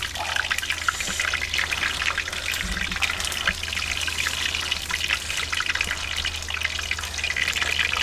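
Crisp fried fish crackles as hands tear it apart.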